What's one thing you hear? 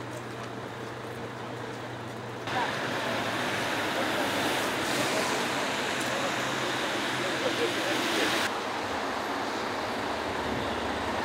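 Traffic hums along a wet street outdoors.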